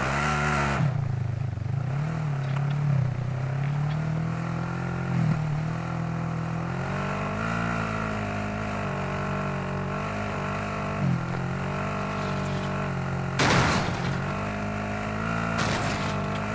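A vehicle engine hums and changes pitch as it drives over rough ground.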